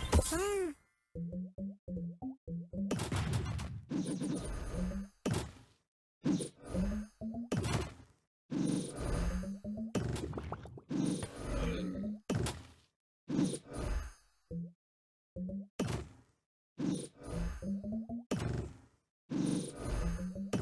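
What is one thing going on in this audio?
Playful game sound effects pop and chime as tiles burst.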